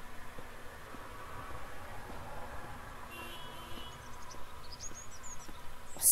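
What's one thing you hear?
Footsteps tread softly on grass and dirt.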